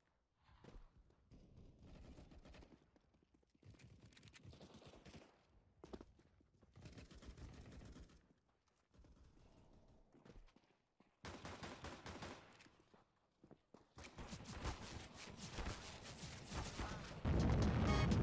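Pistol shots crack in quick bursts.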